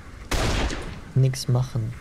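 A rifle shot cracks sharply.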